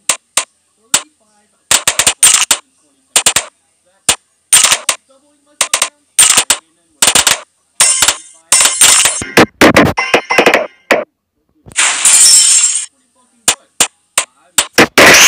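Balloons pop in quick bursts of sharp cracks.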